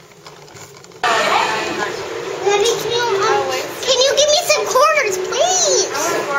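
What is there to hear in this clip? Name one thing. An arcade machine plays loud warbling electronic tunes.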